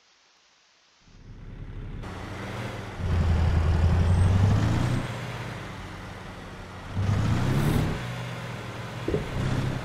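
A truck engine rumbles and revs as the truck manoeuvres.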